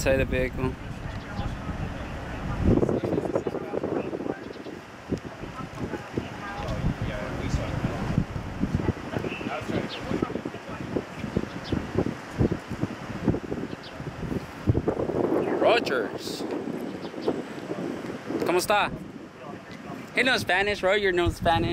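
Men talk calmly nearby outdoors.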